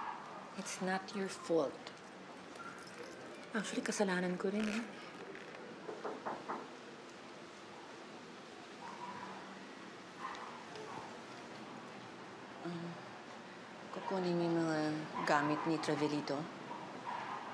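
A middle-aged woman speaks with emotion, close by.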